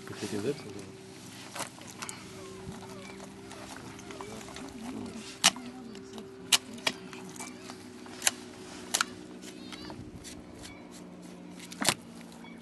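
A knife slices through fish skin and flesh with soft wet scraping.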